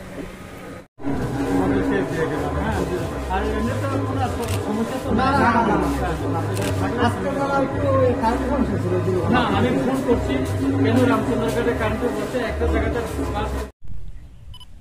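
Several men talk over one another in a noisy crowd.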